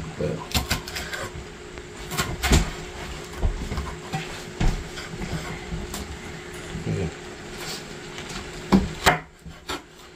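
A knife chops on a wooden cutting board with sharp knocks.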